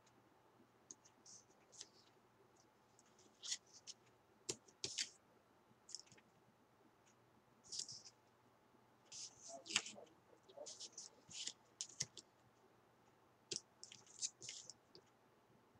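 Paper rustles and slides as hands handle a sheet of card.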